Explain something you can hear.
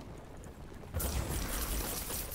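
A magic spell bursts with a loud rushing whoosh.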